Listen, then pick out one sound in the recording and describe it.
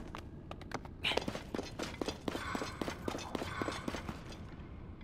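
Footsteps crunch on a dirt ground.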